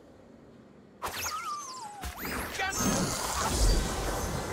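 Magic spell effects whoosh and chime in a video game.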